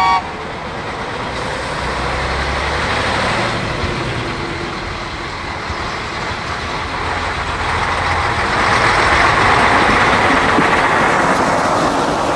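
A railcar's diesel engine rumbles closer and grows louder.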